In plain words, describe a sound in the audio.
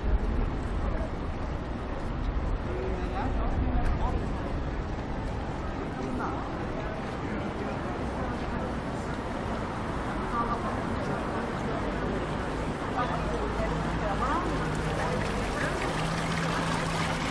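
A steady low city hum fills the air outdoors.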